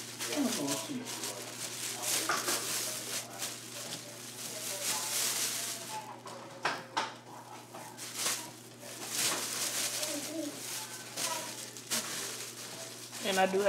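A plastic bag crinkles and rustles as a hand rummages inside it.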